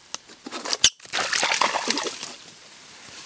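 A small animal scrambles out through dry grass.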